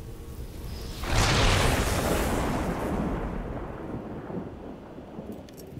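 A loud whooshing burst swells and fades away.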